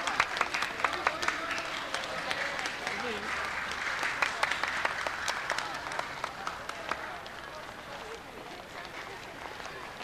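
Footsteps of a crowd walking tap and click on pavement.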